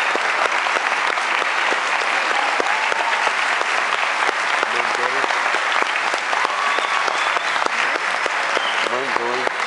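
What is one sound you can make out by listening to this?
An orchestra plays loudly in a large echoing hall.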